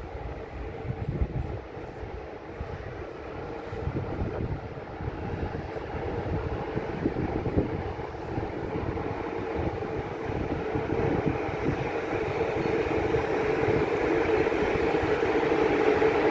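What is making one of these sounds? A locomotive rumbles closer, its engine droning louder and louder.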